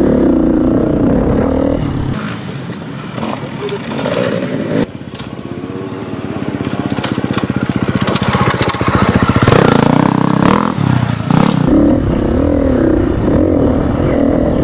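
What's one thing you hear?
A dirt bike engine revs and roars.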